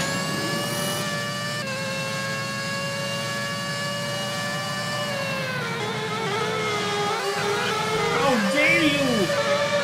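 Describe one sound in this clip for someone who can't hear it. A racing car engine whines at high revs, then drops in pitch as the car slows and shifts down.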